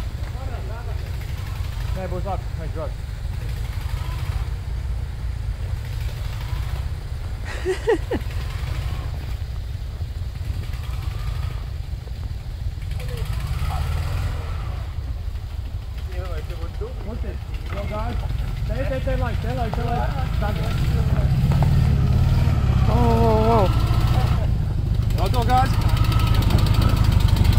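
A small car engine revs.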